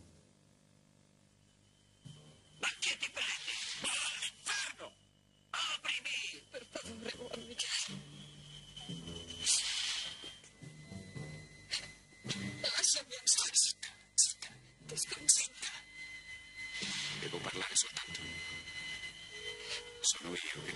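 A woman speaks tearfully, close by.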